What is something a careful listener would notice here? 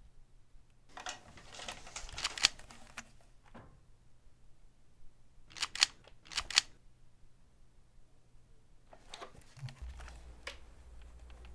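A nail gun fires sharply into wood again and again.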